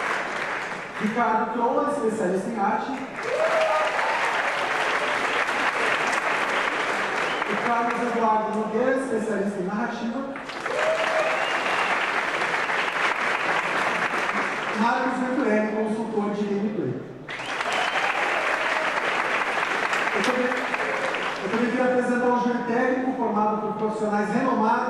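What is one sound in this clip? A young man speaks calmly through a microphone in a large hall.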